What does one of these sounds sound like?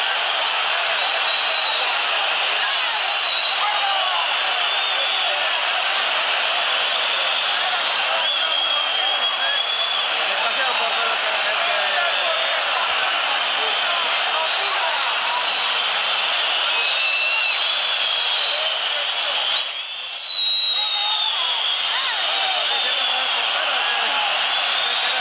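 Fans whistle loudly from the stands.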